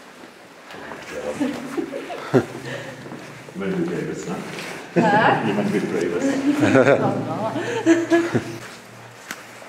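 Men talk with animation in an echoing tunnel.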